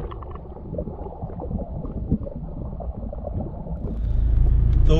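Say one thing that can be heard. Muffled underwater rumbling and gurgling fills the sound.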